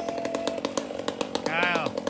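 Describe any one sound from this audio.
A chainsaw buzzes high up in a tree.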